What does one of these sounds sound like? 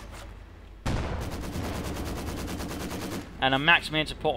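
A machine gun fires in a rapid, steady burst.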